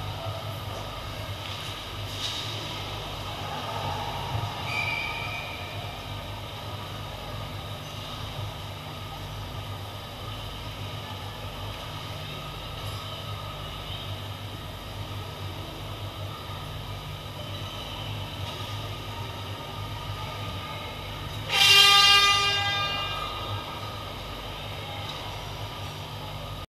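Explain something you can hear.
Ice skates scrape and glide across ice in a large echoing hall.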